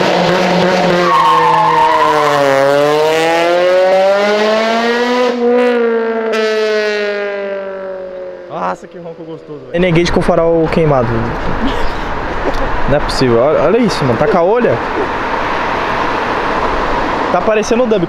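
A car engine revs loudly, rising and falling in pitch.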